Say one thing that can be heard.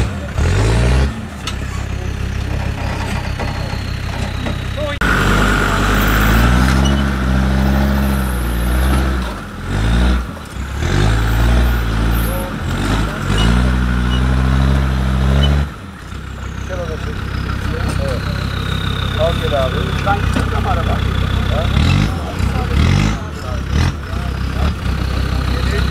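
Tyres churn and slip through mud.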